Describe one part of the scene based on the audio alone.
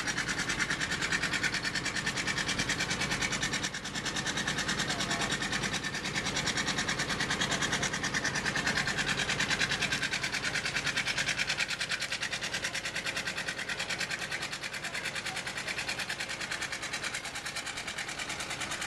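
A steam traction engine idles with a fast, steady chugging beat.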